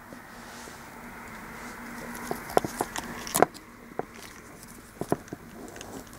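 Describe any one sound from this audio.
Plastic parts of a toy rattle and click as hands handle it.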